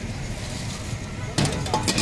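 Hot oil sizzles and bubbles in a fryer.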